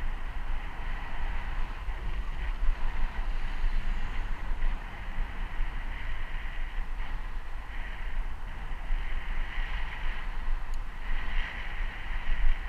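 Bicycle tyres hum on smooth asphalt.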